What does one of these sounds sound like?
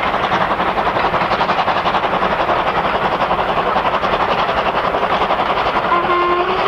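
A steam locomotive chuffs rapidly and steadily as it hauls a train.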